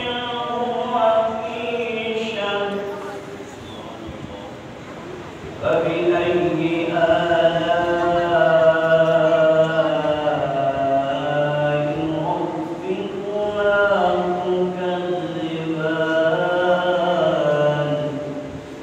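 A man chants in long, melodic phrases through a microphone in an echoing hall.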